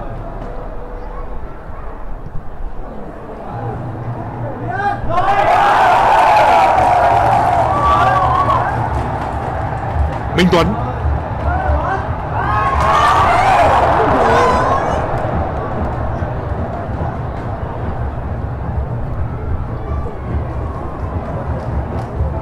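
A large stadium crowd roars steadily, swelling louder at times.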